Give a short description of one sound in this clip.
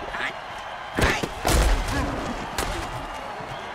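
Heavy bodies crash together in a tackle.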